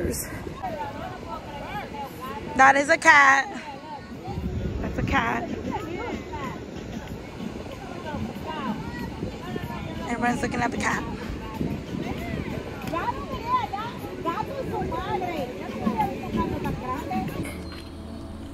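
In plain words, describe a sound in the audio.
Several women talk casually nearby outdoors.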